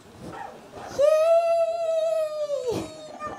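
A young woman sings a long held note through a loudspeaker.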